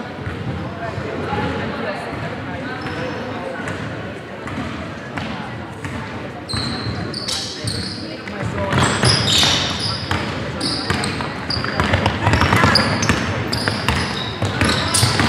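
Young women players call out to each other across an echoing hall.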